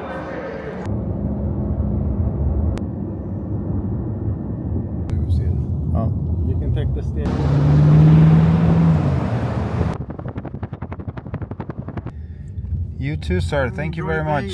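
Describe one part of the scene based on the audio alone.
A car engine hums and tyres rumble on a road.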